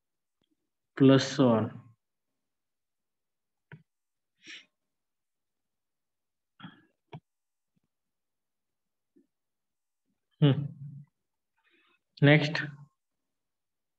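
A man speaks in short bursts through a microphone, with long pauses.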